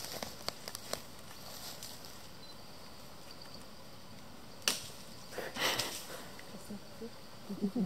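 Leaves and branches rustle as a chimpanzee climbs through a tree.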